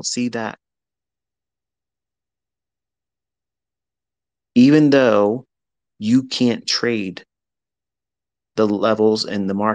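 A man speaks in short bursts with pauses between them.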